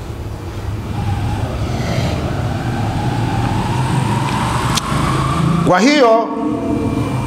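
A middle-aged man speaks calmly and steadily into a close microphone.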